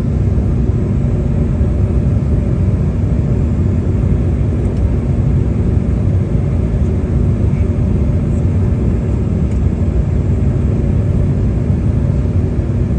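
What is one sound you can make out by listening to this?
An aircraft engine drones steadily and loudly throughout.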